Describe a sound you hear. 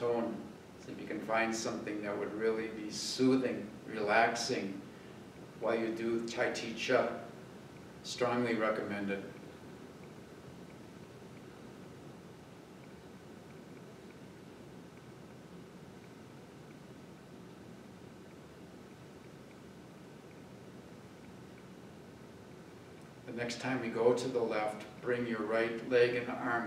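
A middle-aged man speaks calmly, as if instructing, in a room with a slight echo.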